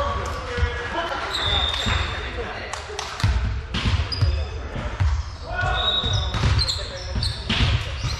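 Young players call out to each other.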